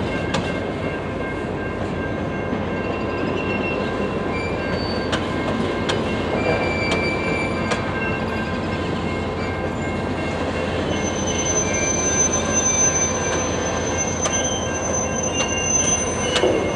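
Freight hopper cars roll past, wheels clicking over the rails.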